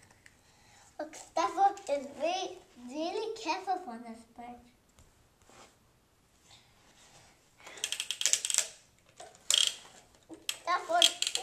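A young child talks with animation close by.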